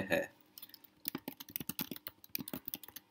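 Keyboard keys clack quickly in an irregular patter.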